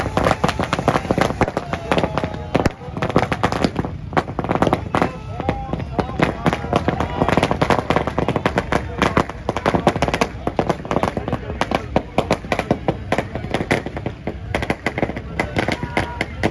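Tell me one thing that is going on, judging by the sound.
Firecrackers crackle and bang rapidly outdoors.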